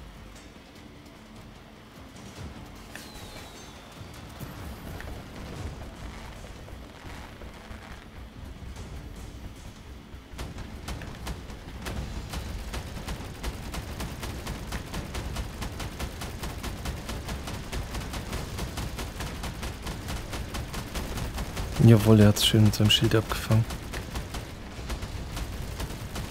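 A mechanical walker's legs clank and thud as it strides along.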